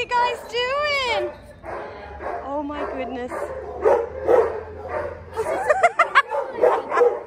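A small dog whines in high, wavering yelps.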